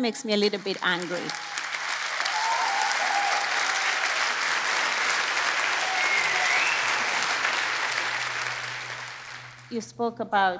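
An audience applauds loudly, then the applause fades.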